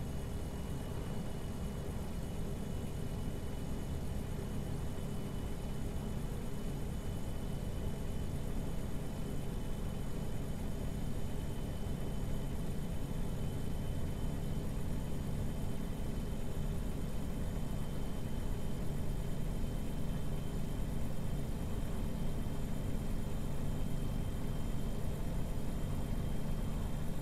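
A truck engine drones steadily at highway speed.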